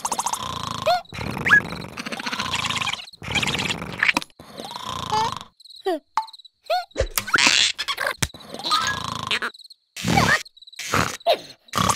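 A small cartoon character squeaks and chatters in a high voice.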